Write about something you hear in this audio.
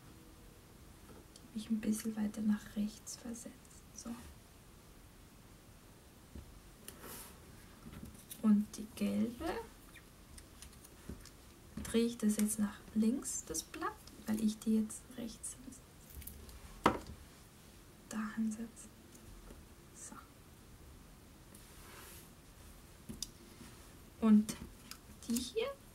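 Paper cutouts rustle and tap softly on a wooden tabletop.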